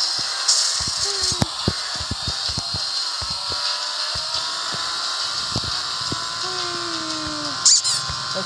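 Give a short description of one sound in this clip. A kart's engine hums steadily as it races.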